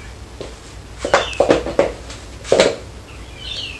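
Shoes knock and clatter on a metal rack.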